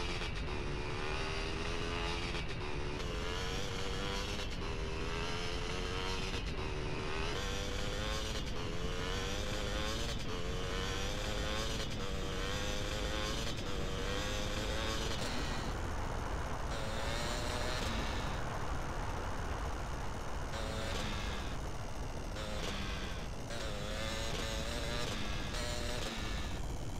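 A motorbike engine drones steadily.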